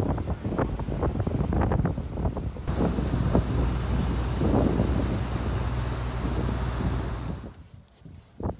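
Outboard engines roar as a boat speeds over the water.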